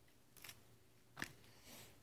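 A hand picks up food from a plate with a soft rustle.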